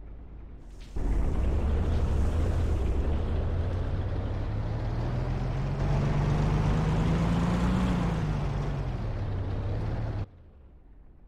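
A tank engine rumbles loudly and revs as the tank drives along a road.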